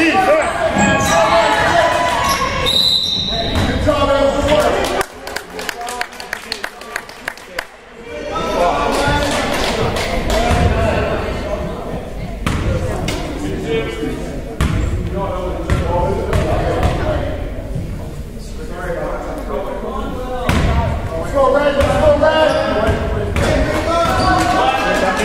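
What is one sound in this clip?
Young players and onlookers shout and call out with animation, close by.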